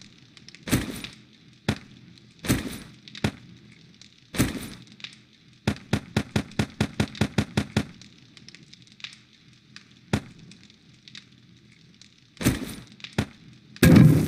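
Short clicks and thuds sound as items are moved around in a game menu.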